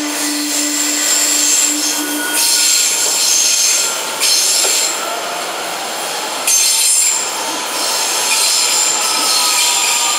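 A train's wheels clatter over rail joints.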